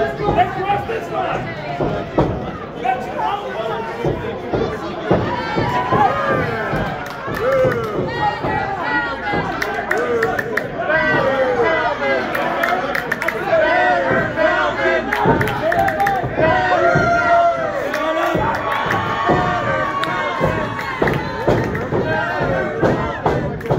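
Wrestlers thud onto a ring canvas.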